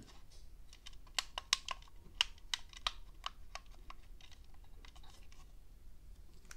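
Plastic controller buttons and sticks click under thumbs.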